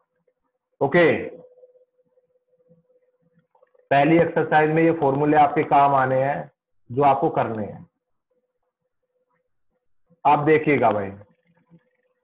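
A man talks calmly through a microphone, explaining in short bursts.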